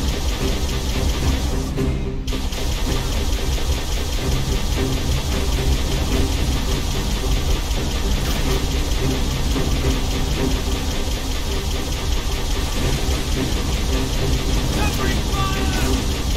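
An energy turret fires rapid, buzzing bursts.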